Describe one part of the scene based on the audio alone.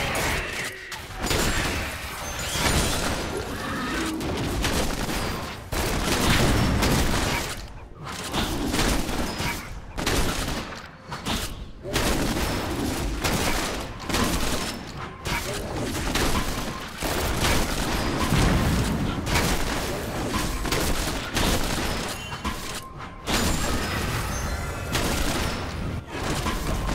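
Video game combat effects clash and whoosh.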